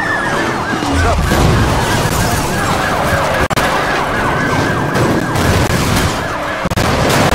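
A car crashes with a loud metallic smash.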